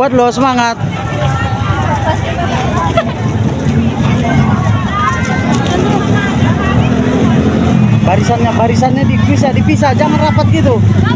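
A crowd of girls chatters and calls out nearby outdoors.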